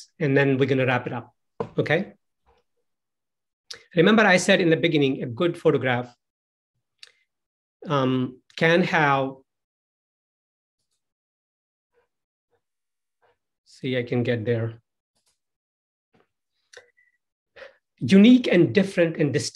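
A man talks calmly into a close microphone, heard through an online call.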